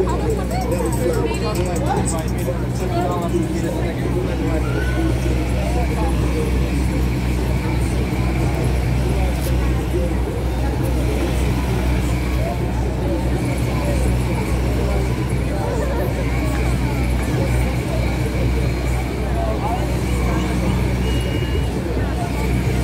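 A crowd of people chatters on a busy street outdoors.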